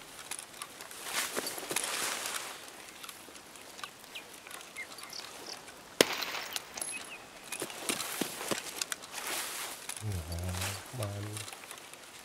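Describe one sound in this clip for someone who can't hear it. Leafy branches rustle as someone pushes through them.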